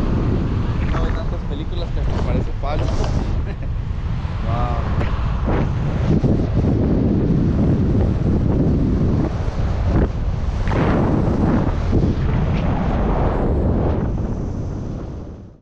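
Strong wind rushes and buffets loudly throughout.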